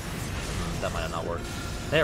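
A blade slashes into a giant creature.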